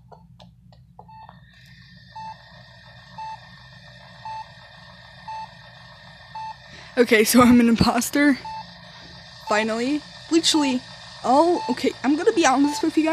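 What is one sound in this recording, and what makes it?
A scanner beeps at a steady, even pace.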